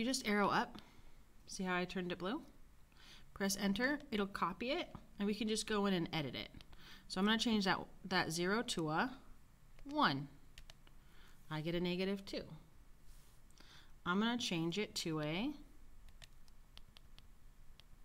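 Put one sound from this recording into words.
Calculator keys click as they are pressed.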